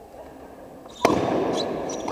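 A bat cracks sharply against a ball in a large echoing hall.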